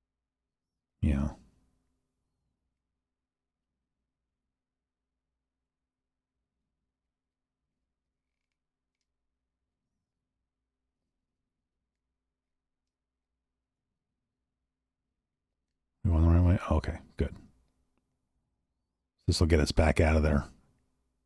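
A man speaks briefly and calmly into a microphone, close by.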